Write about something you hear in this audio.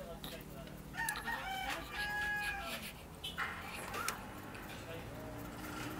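A newborn baby coos and whimpers softly up close.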